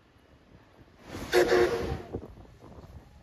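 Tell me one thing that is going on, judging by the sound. A steam locomotive blows a loud whistle.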